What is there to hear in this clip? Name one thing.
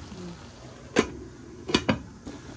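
A glass lid clinks onto a pan.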